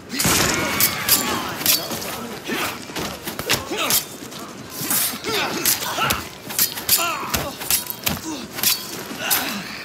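Blows land with sharp thuds and smacks in a fight.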